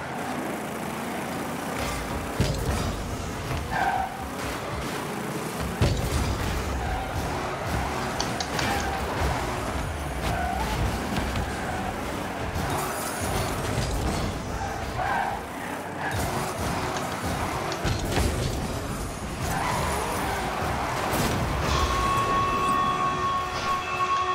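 A racing car's engine roars and boosts.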